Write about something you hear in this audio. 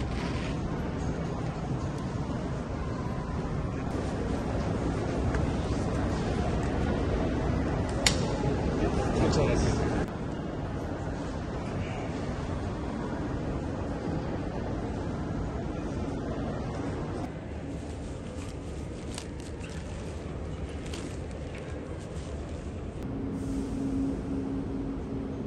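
Crowd chatter echoes through a large hall.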